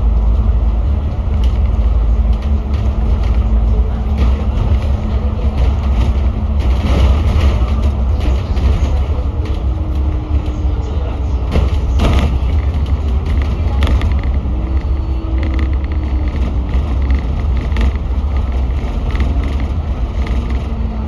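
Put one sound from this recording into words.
A bus engine rumbles steadily while driving along a road.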